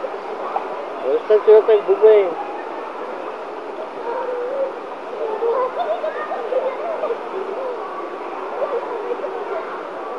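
Young girls laugh and shout playfully close by.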